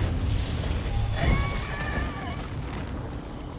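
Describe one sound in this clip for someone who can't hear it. Magic crackles and hums loudly.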